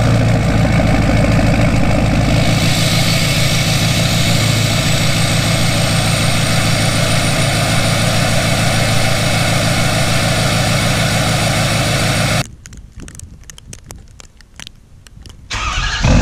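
A truck engine idles with a loud, deep rumble from its exhaust.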